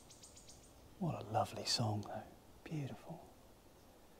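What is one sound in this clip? A man speaks quietly and calmly close by.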